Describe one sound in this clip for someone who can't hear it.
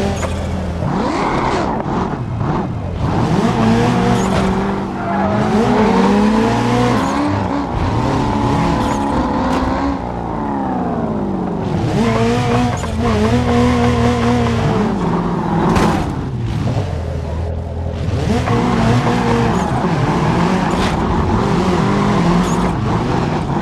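A car engine revs up and down loudly as gears shift.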